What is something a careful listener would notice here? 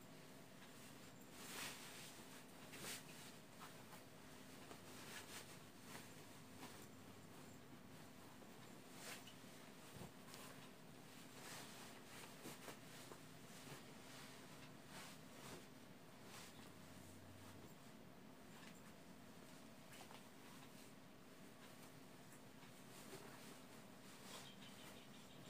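Cloth rustles and swishes as bedding is shaken and folded.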